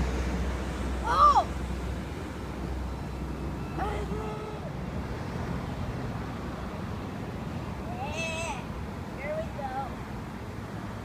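A young boy shouts excitedly nearby.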